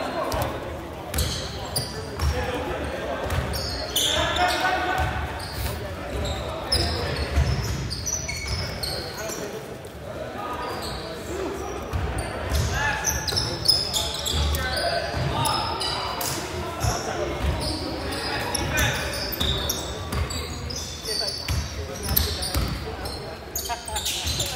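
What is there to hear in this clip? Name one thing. Spectators nearby talk and call out.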